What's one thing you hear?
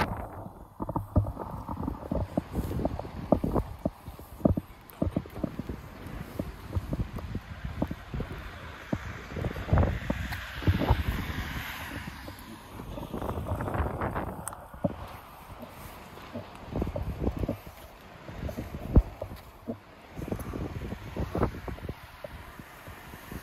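Footsteps scuff steadily on a concrete path.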